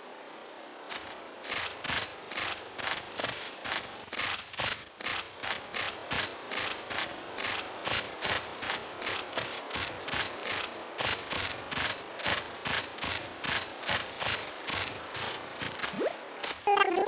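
Quick footsteps patter across grass.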